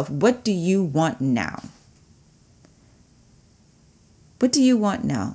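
A woman speaks warmly and with animation into a close microphone.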